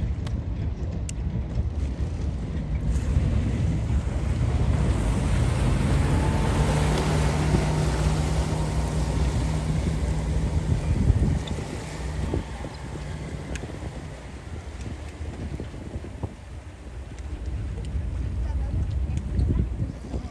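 Water laps and splashes against hulls.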